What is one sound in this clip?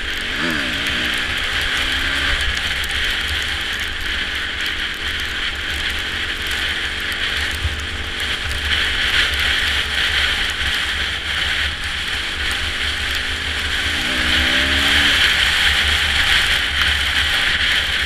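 Tyres crunch over loose gravel.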